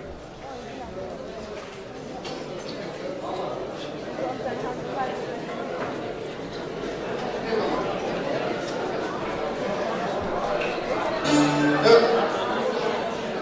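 A crowd of people chatters in the background.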